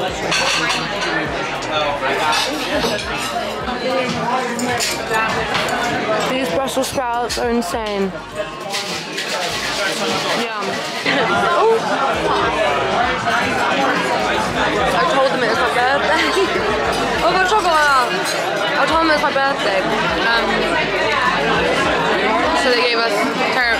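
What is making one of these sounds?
A crowd of diners chatters all around in a busy room.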